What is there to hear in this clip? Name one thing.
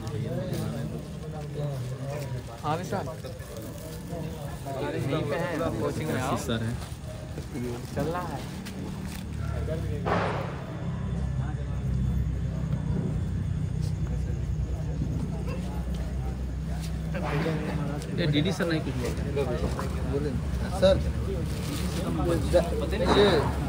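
Young men talk and chatter nearby.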